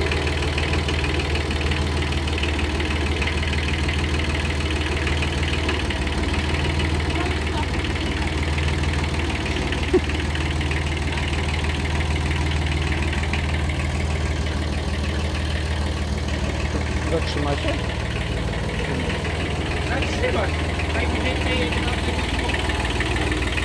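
A compact diesel tractor engine runs with a steady low throb.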